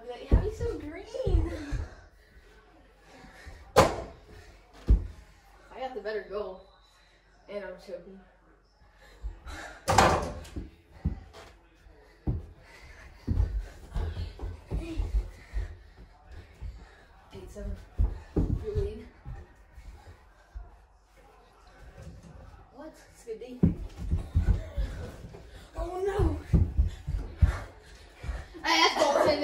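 A ball bounces off the floor and walls.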